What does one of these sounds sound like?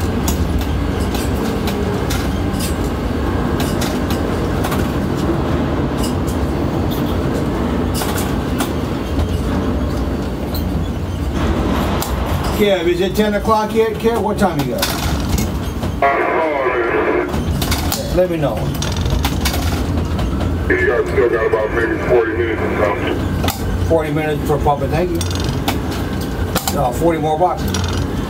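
A crane's machinery hums with a steady low rumble.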